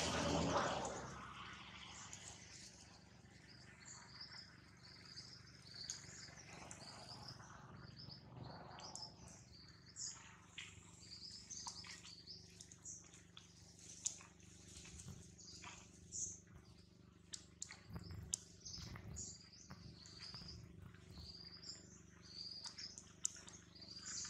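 Dry leaves rustle and crunch as monkeys walk and forage over them.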